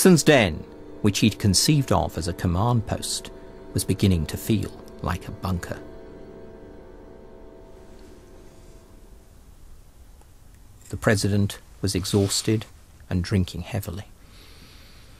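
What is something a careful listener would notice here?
An elderly man speaks calmly and slowly, close by.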